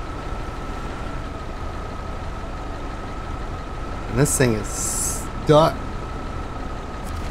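A heavy truck engine idles with a low, steady rumble.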